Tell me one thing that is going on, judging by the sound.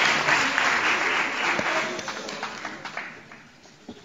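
A children's choir sings in a large echoing hall, the sound fading away.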